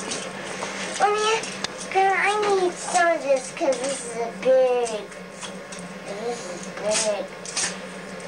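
A young girl talks in a high, excited voice close by.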